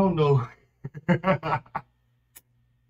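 A young man laughs loudly, close by.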